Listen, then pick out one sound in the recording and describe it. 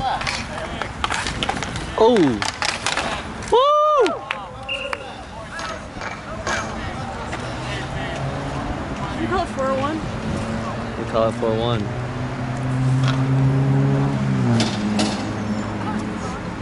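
Hockey sticks clack against a ball and against each other.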